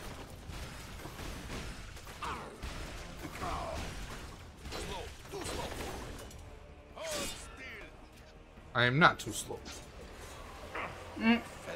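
Punches and blows thud in a fast fight.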